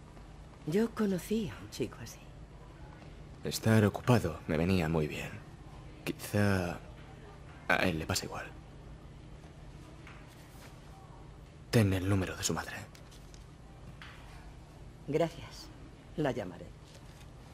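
A middle-aged woman speaks warmly, close by.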